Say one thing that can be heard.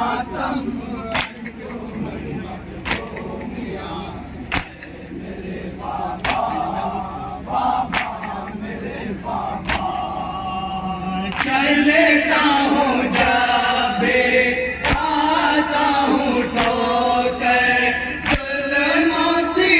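Men beat their chests in unison with loud rhythmic thumps.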